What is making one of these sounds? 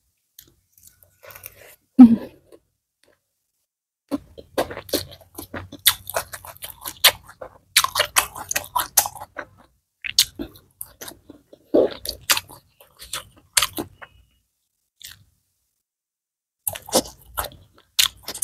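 A young woman chews crunchy food close to a microphone.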